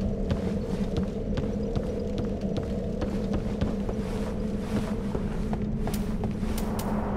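Footsteps knock on wooden planks.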